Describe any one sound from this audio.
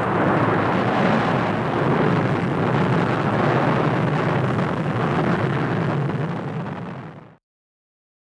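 A rocket engine roars loudly at launch.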